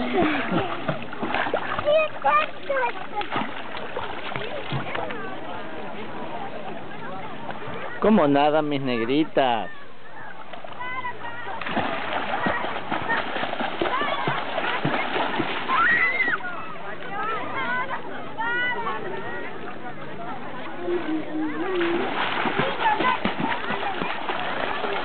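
Young girls shout and squeal excitedly nearby.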